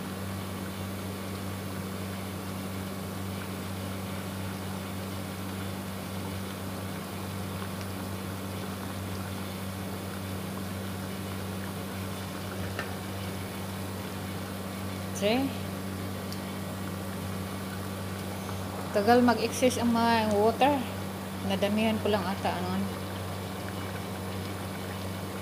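A pot of liquid bubbles and boils steadily.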